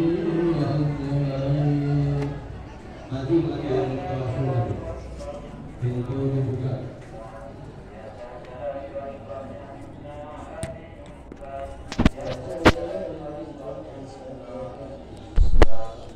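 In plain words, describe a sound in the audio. Men recite prayers in a low, steady chant nearby.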